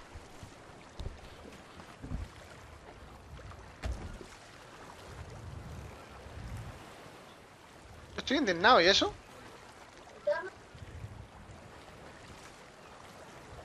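Waves lap gently on a shore.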